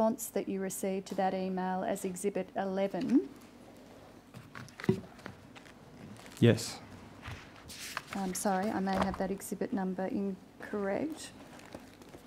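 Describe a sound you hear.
A woman speaks calmly and formally through a microphone.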